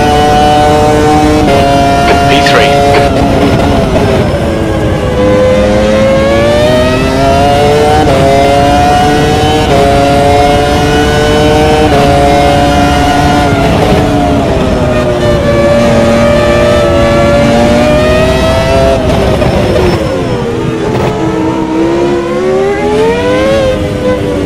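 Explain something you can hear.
A racing car engine screams loudly, rising and falling in pitch as the car shifts gears and brakes.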